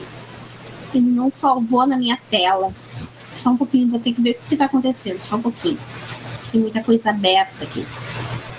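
An older woman speaks calmly over an online call.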